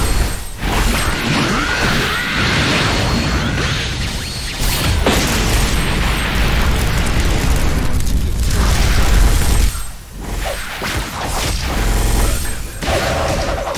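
Fiery explosions roar.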